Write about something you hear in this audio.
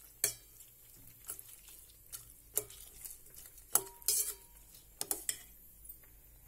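A metal spoon stirs and clinks against a steel pot.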